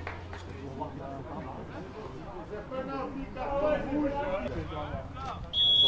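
Several boys talk and call out to each other outdoors.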